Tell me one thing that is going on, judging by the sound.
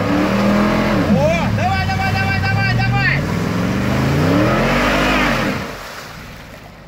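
Wheels spin and splash through thick mud.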